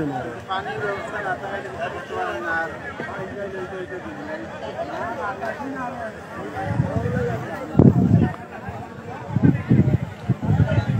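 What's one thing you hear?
A crowd of men shout and talk excitedly nearby.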